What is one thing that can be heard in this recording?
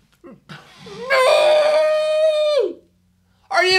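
A young man lets out a long, loud groan.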